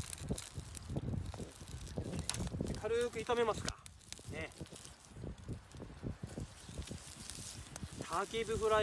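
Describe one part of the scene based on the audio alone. Food sizzles in a pan over a wood fire.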